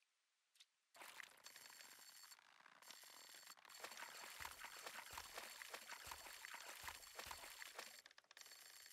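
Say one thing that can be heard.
A fishing line reels in with a soft whirring.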